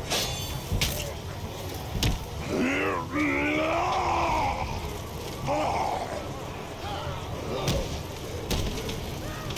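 Metal weapons clash and thud in a fight.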